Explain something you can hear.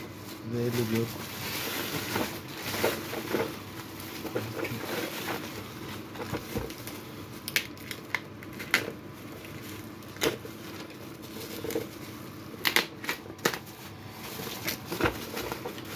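A utility knife slices through plastic wrap.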